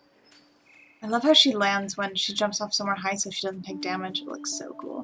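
A woman talks calmly close to a microphone.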